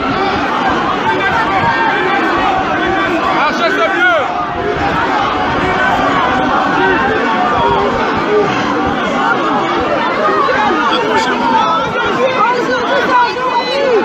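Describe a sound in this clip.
A man shouts through a megaphone, heard from a distance outdoors.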